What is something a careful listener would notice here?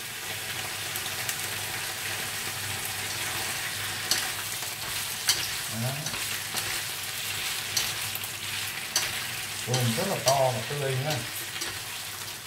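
Chopsticks clack against a metal pan while stirring.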